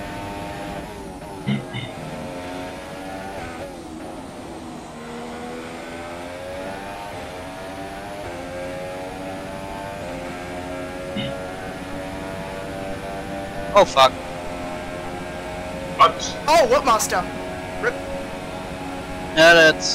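A racing car engine whines steadily, rising and falling in pitch as the car speeds up and slows for corners.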